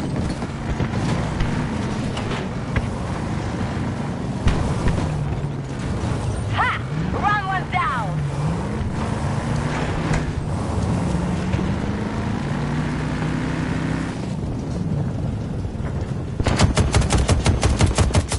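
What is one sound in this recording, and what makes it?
A heavy tank engine rumbles and whines as the vehicle drives over rough ground.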